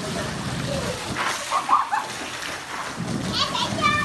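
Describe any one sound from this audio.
Children splash in water.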